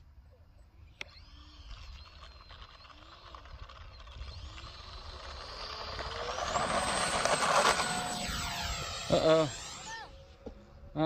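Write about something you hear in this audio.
A small drone whines overhead, rising in pitch and then cutting off.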